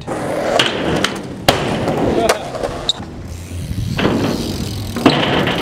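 A skateboard clacks and slaps against a ramp.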